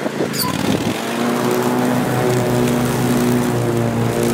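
A riding mower engine hums as it approaches.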